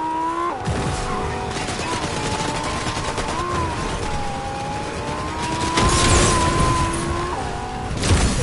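A car engine hums steadily and revs.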